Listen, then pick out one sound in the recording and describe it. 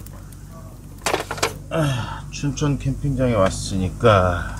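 A young man speaks with animation close by.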